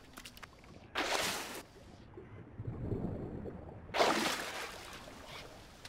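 Water splashes as hands scoop it up.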